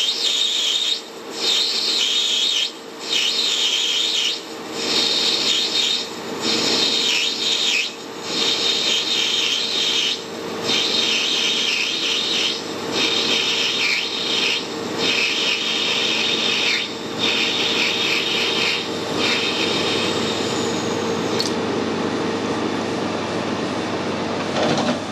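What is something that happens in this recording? A lathe hums steadily as it spins.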